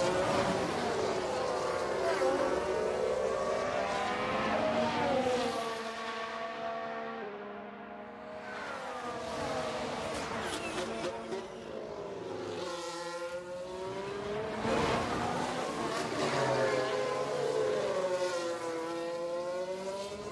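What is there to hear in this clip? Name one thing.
Racing car engines whine and rise and fall in pitch as they speed past.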